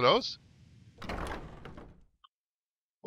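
A heavy wooden door swings open with a creak.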